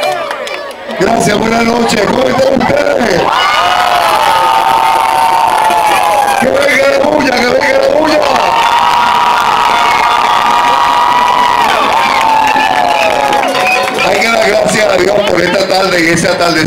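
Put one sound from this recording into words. A crowd of young people sings and cheers loudly outdoors.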